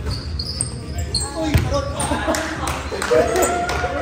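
A volleyball thuds off a player's arms.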